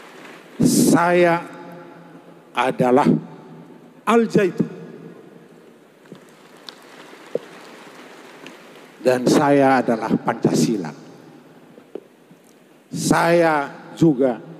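A middle-aged man speaks forcefully in loud bursts through a microphone and loudspeakers.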